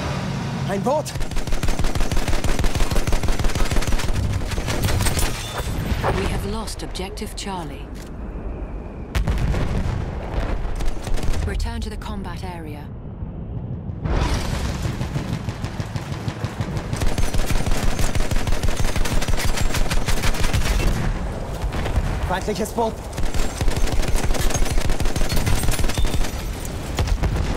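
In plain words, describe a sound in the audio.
A heavy machine gun fires rapid bursts close by.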